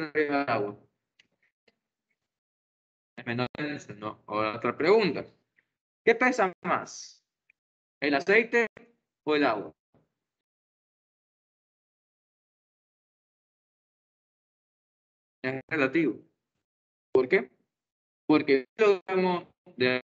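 A young man speaks calmly through a close microphone, in short phrases with pauses.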